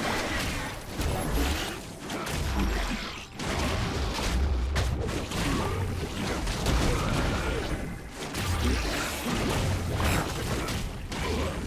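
Fighting sounds of blows and magic blasts clash repeatedly.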